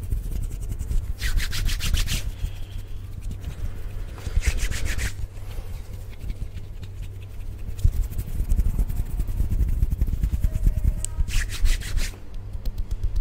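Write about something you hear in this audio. Hands rub and brush close against a microphone.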